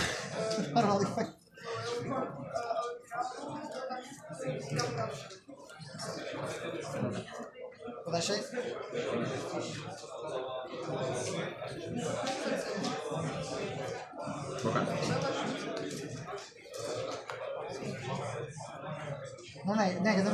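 Cards slap and slide onto a play mat.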